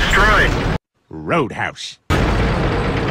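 A cartoon man shouts excitedly.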